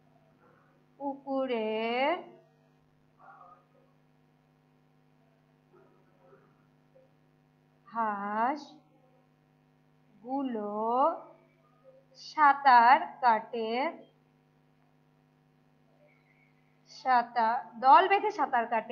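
A woman speaks slowly and clearly nearby, in short phrases with pauses.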